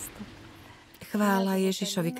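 A middle-aged woman speaks calmly, close to the microphone.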